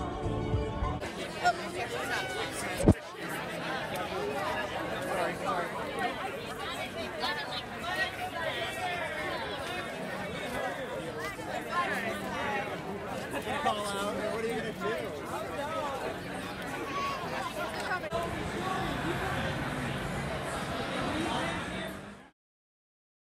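A crowd of men and women talks and cheers outdoors.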